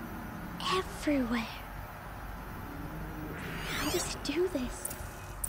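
Electronic tones chirp and warble.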